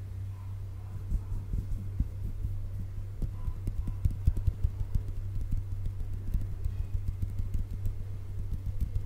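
Fingers tap and flutter rapidly on a microphone close up.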